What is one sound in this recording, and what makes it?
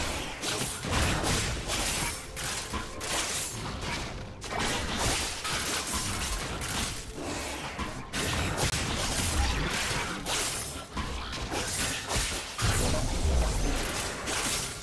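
Video game blows land with heavy thuds.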